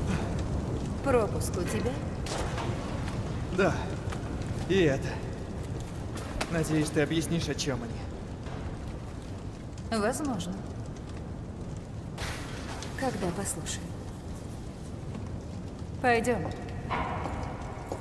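A young woman speaks calmly and coolly nearby.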